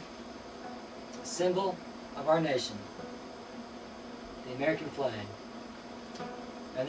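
An acoustic guitar is strummed gently.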